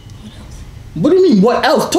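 A young man talks excitedly close by.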